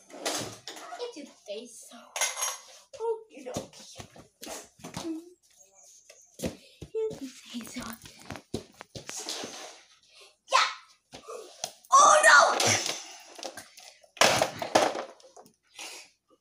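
Plastic toys clatter and knock on a wooden floor.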